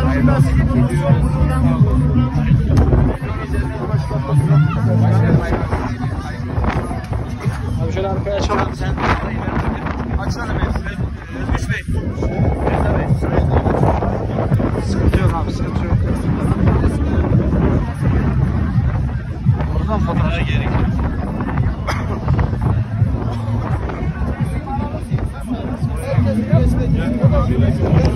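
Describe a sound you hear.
A crowd of men and women chatter close by outdoors.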